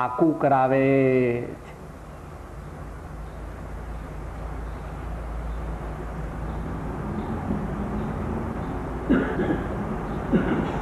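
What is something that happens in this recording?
An elderly man chants nearby in a slow, drawn-out voice.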